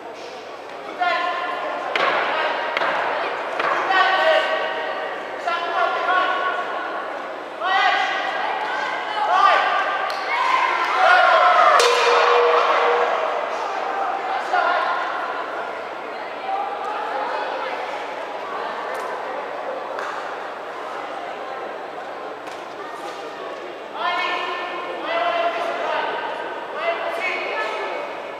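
Men shout encouragement in a large echoing hall.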